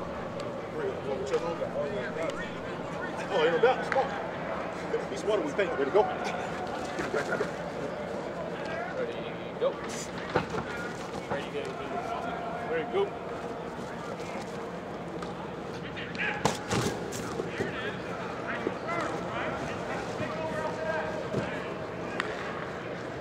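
Several men shout and call out with animation nearby, in a large echoing space.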